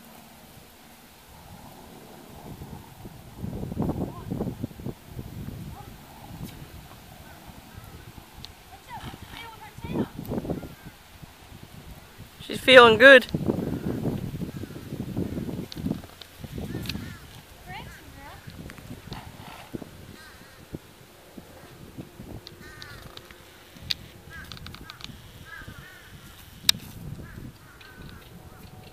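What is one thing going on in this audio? Hooves thud softly on dirt and grass as horses walk and trot.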